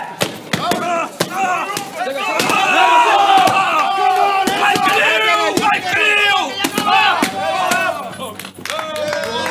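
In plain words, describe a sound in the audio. Several men shout and cheer outdoors.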